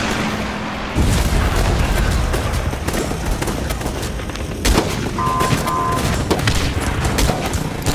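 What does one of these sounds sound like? Flames burst with a roar and crackle.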